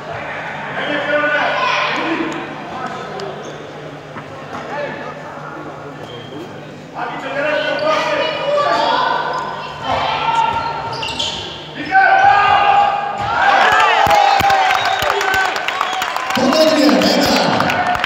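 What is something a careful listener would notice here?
Young women shout and call out to each other across an echoing indoor hall.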